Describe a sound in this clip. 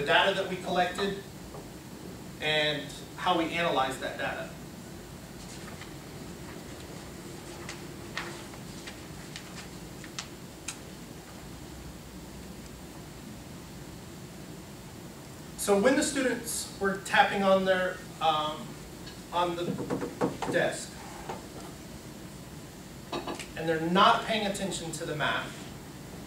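A man speaks calmly to a room, with long pauses.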